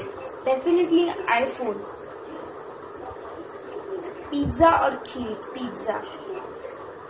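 A young girl speaks close by in short bursts.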